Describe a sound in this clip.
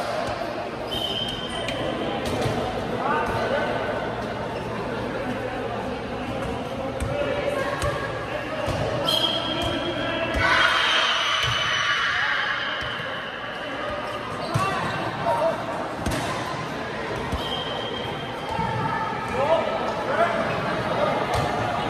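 Players' hands strike a volleyball with sharp slaps.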